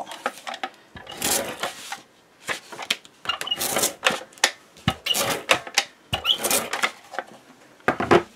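A tape runner clicks and rasps as it rolls adhesive onto paper.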